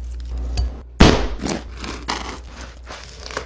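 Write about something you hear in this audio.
A knife crunches through crusty bread.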